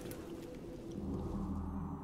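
A magical spell bursts with a bright shimmering whoosh.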